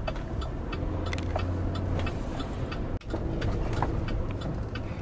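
Tyres roll on pavement.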